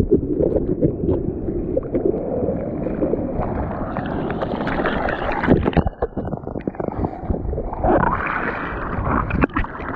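Water sloshes over a board.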